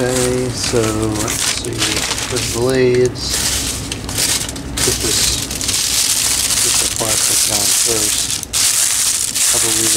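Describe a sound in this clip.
Cardboard scrapes and rustles as hands move a box.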